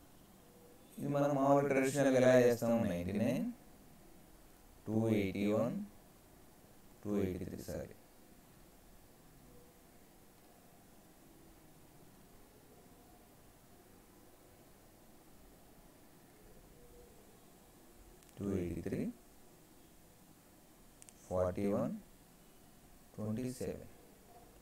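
A man speaks calmly into a microphone, explaining in short bursts with pauses.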